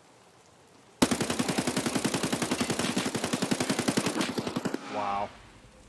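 A rifle fires a long, rapid burst of loud shots.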